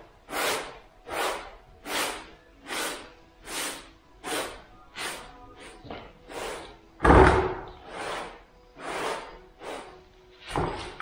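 A sponge scrubs back and forth over a rough floor in quick strokes.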